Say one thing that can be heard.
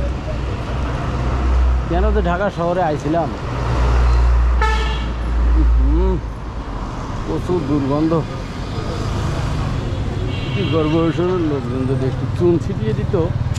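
Traffic rumbles steadily along a street.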